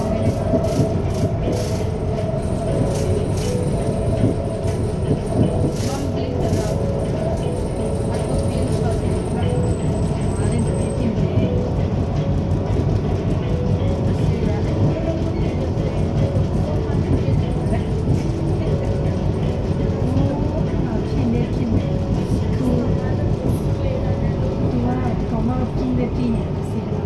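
An elevated metro train rumbles along steel rails at speed.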